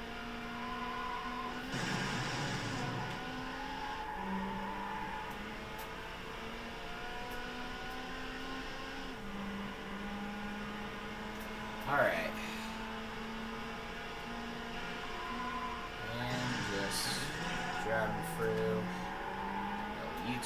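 A race car engine roars steadily, rising and falling in pitch as the car speeds up and slows down.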